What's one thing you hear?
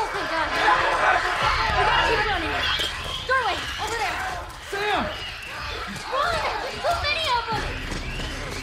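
A young girl shouts in panic.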